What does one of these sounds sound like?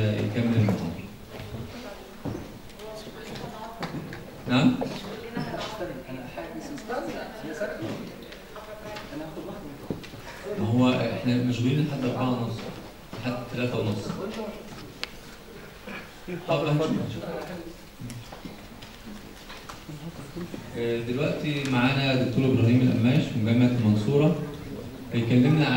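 A middle-aged man speaks into a microphone over loudspeakers in a large room, with pauses.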